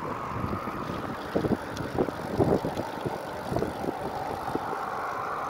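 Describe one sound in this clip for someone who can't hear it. Wind buffets loudly across a moving bicycle.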